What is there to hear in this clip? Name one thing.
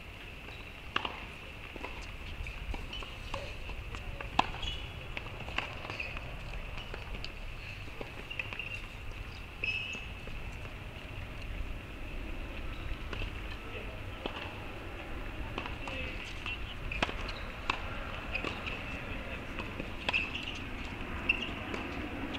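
A tennis ball is hit back and forth with sharp pops.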